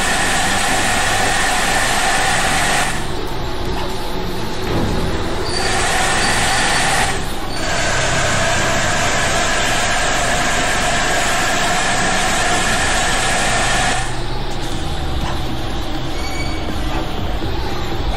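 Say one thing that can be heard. A bus engine hums steadily as the bus drives along.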